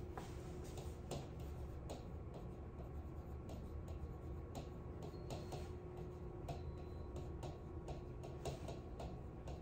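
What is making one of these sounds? A marker taps and squeaks on a board.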